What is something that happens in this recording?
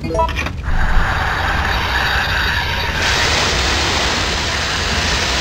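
A fire hose sprays water with a strong hiss.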